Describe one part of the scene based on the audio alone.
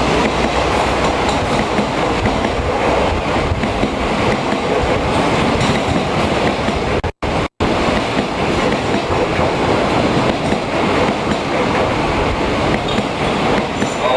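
A passenger train rumbles and clatters past close by.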